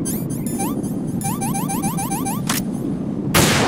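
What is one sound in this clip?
Menu beeps chirp in quick succession.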